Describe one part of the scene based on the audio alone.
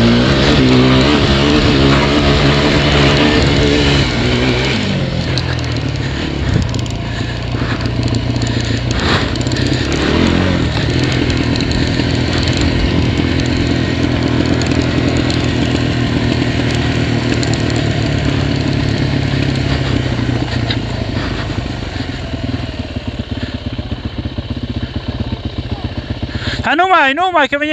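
A quad bike engine roars and revs up close.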